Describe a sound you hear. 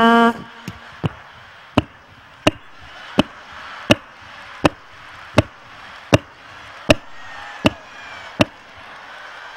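A man makes loud kissing sounds into a microphone, over and over at a steady pace.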